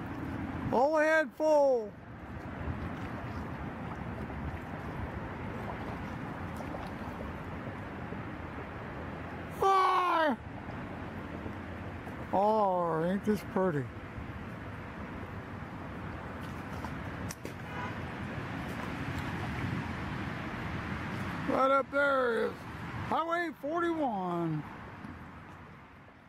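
Water laps softly against a kayak's hull.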